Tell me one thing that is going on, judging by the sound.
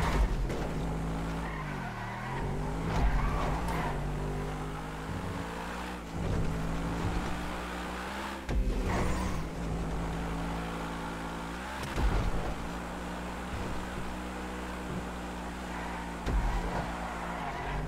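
A sports car engine revs hard, rising and dropping in pitch as it shifts gears.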